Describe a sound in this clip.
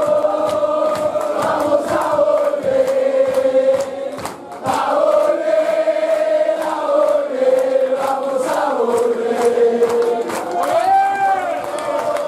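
People in a crowd clap their hands.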